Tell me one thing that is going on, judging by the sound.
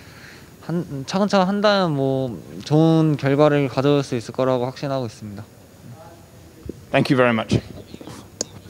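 A young man speaks calmly and close into a microphone.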